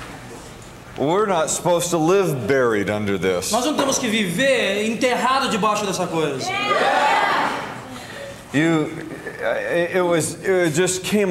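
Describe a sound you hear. A man talks loudly and energetically through a microphone.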